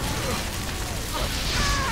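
A blast bursts nearby.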